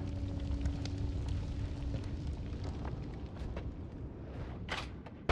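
Short crackling effects sound from a video game.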